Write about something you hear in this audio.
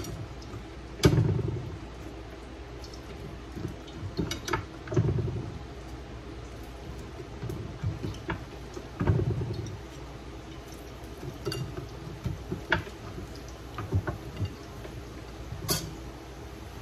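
A plate presses down on fried plantain slices, thumping on a wooden board.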